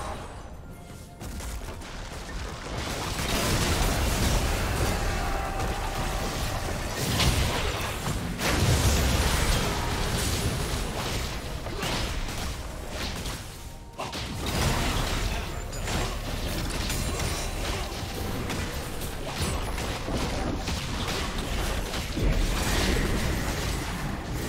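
Game spell effects crackle and boom in a busy fight.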